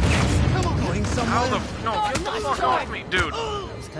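Punches land with dull thuds during a fight.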